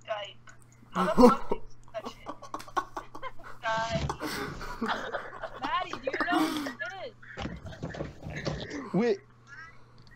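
A second teenage boy shouts and laughs over an online call.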